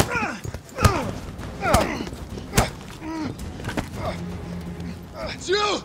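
Men grunt and struggle in a fight.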